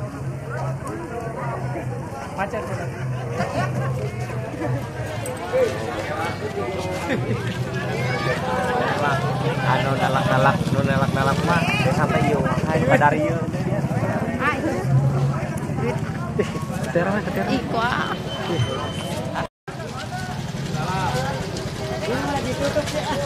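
A crowd of men and women chatter loudly outdoors.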